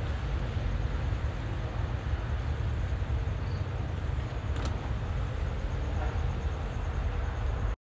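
Wind rustles through leafy bushes outdoors.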